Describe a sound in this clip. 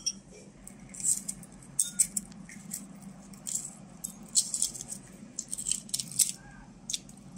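Eggshell cracks and crinkles as it is peeled.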